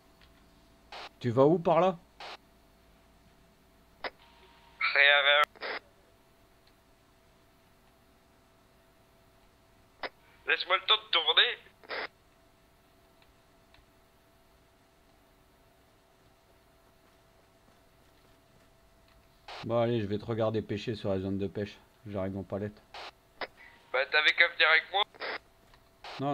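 A man speaks into a microphone in short, lively bursts.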